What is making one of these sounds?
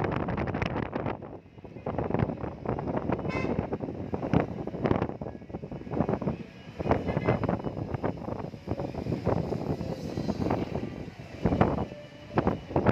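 Wind rushes and buffets through an open car window.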